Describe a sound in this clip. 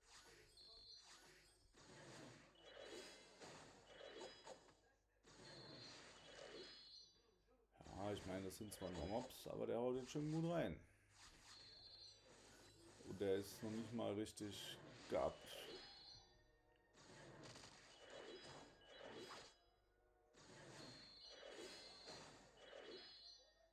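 Magic spells blast and crackle in a game battle.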